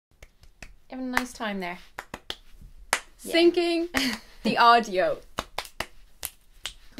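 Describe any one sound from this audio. A young woman claps her hands rapidly.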